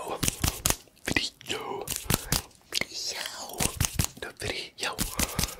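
A man whispers softly, very close to a microphone.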